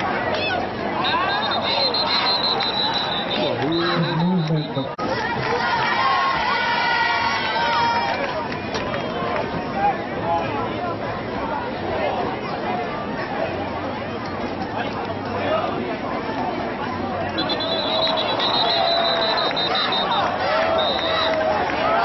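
A referee's whistle blows long and shrill.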